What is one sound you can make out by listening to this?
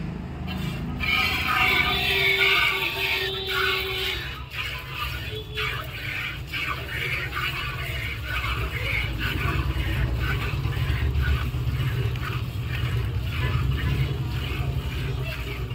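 Milk squirts in quick rhythmic spurts into a metal pail.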